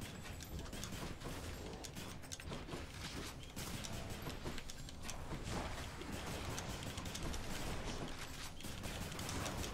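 Fast combat sound effects of a video game clash and whoosh.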